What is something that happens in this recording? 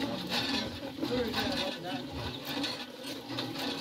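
A hand water pump creaks and clanks as its handle is worked.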